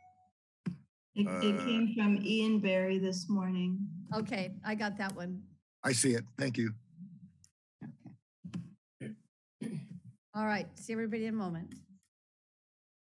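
A middle-aged woman speaks calmly over an online call.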